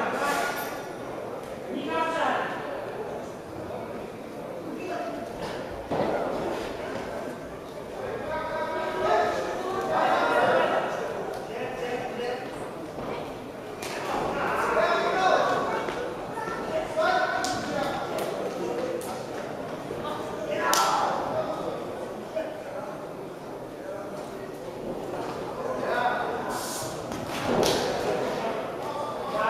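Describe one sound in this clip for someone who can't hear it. Men shout instructions from ringside in a large echoing hall.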